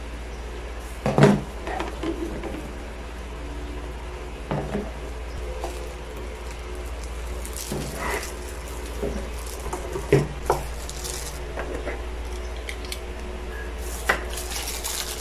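Plastic containers knock and clatter as they are handled.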